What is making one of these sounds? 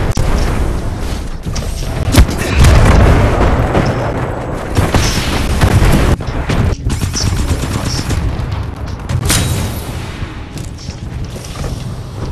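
Gunfire and explosions rumble heavily throughout.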